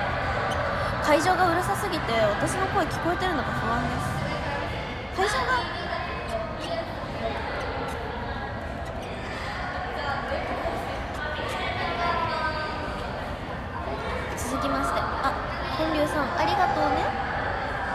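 A young woman speaks softly and close up.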